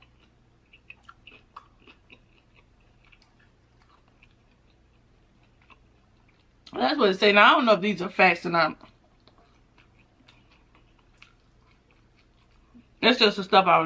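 Crispy food crunches and crackles as a woman chews.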